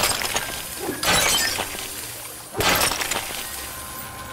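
Leaves rustle in bursts as a small creature pushes through thick foliage.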